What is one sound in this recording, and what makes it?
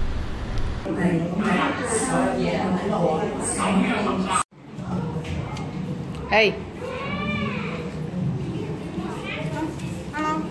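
Children chatter and talk indoors.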